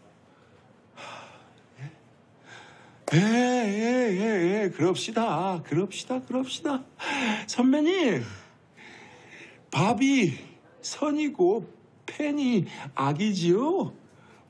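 A man pleads loudly in a tearful, breaking voice close by.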